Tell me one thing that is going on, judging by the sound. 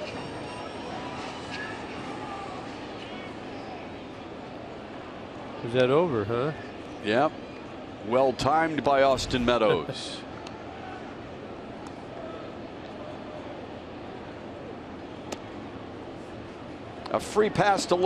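A crowd murmurs steadily outdoors in a large stadium.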